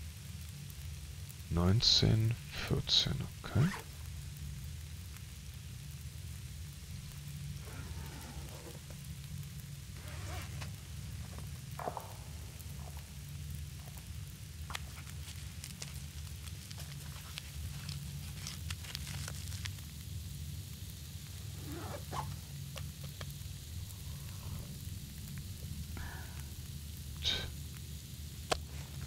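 A campfire crackles and hisses steadily.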